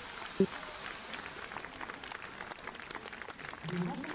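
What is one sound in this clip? Fountain jets spray and splash into water.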